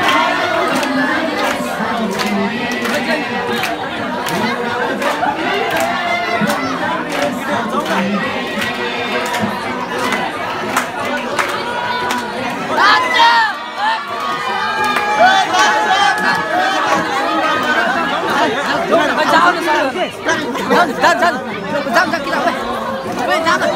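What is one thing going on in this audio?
People clap along in rhythm.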